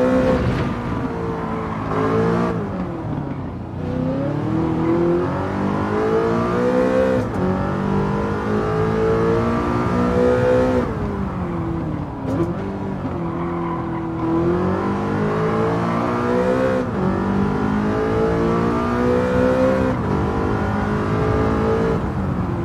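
A car engine roars loudly, rising in pitch as it speeds up and dropping at each gear change and braking.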